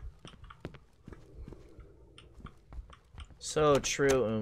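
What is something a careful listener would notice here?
Computer keys click and clatter rapidly.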